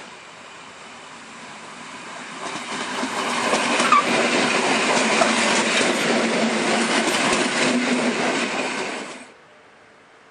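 An electric passenger train rattles past close by.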